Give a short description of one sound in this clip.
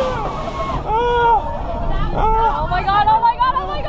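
A young man shouts with excitement.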